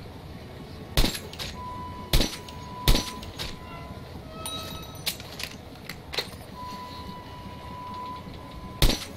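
A sniper rifle fires loud, sharp shots, one at a time.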